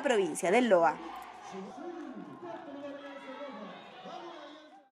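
A crowd of children chatters and sings together.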